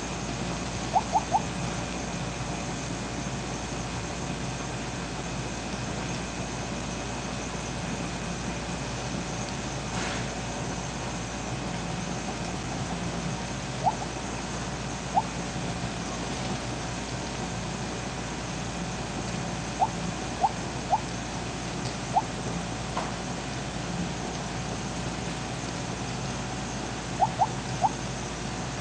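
Short electronic blips sound now and then in a game.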